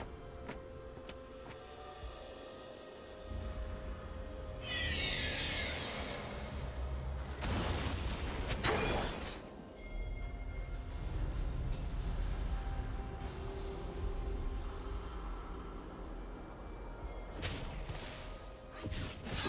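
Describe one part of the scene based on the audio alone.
Video game combat sound effects clash and whoosh.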